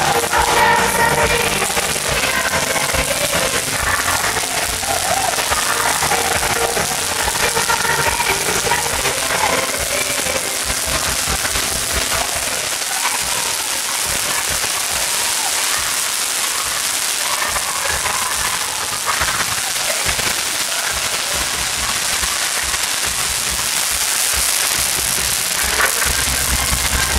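A crowd of young women cheers and shouts.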